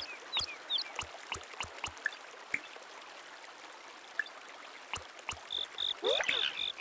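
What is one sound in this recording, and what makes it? Short electronic menu blips click as selections change.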